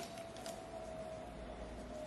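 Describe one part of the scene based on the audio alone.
Scissors snip through thick hair close by.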